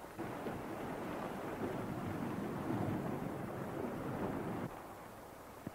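Waves splash and roll on open water.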